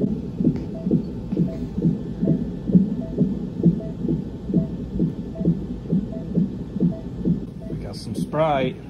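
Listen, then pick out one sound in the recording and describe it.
A fetal heart monitor pulses with a fast, steady whooshing beat.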